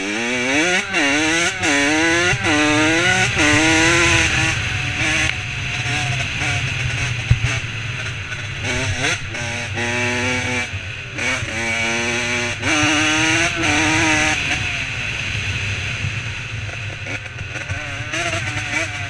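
Wind buffets loudly against the rider's helmet.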